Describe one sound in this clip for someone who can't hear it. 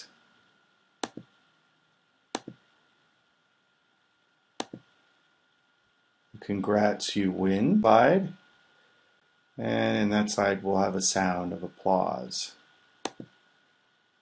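A computer mouse clicks a few times.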